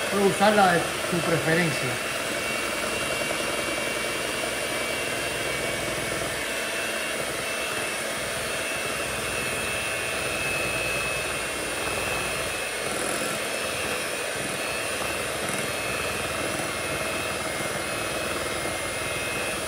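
An electric hand mixer whirs steadily, beating a batter in a bowl.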